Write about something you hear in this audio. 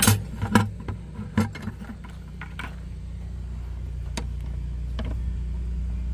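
A plastic catcher bin knocks and clicks against a metal latch.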